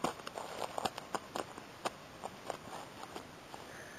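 A boot steps down on dry twigs and leaf litter with a soft crunch.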